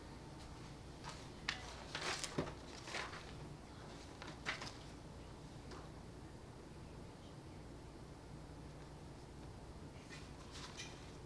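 A man speaks quietly at a distance in a room with some echo.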